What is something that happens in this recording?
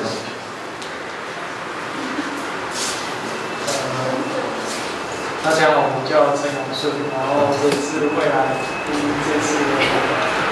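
A small group of young people chatters and murmurs nearby.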